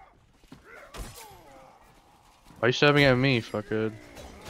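A sword clangs against armour.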